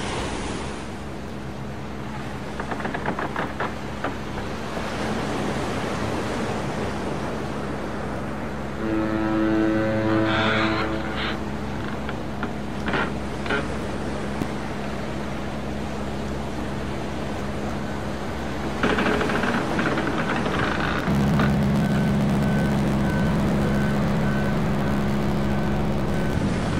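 Rain patters on the motorcycle.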